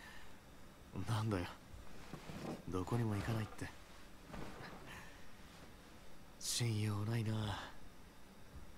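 A man speaks quietly and calmly, close by.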